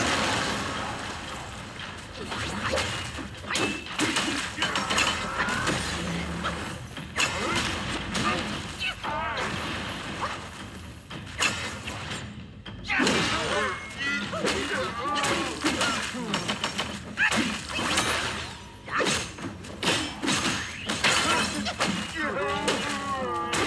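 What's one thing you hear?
Staff blows strike a giant in a video game fight.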